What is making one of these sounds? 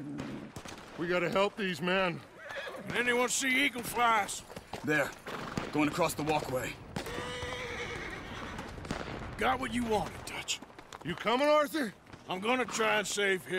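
A man speaks urgently nearby.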